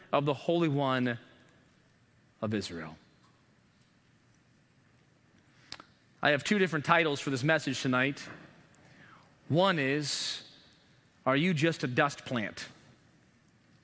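A man speaks with emphasis through a microphone, in short bursts with pauses.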